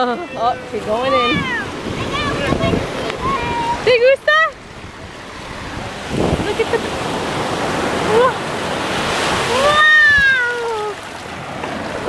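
Shallow water splashes around feet.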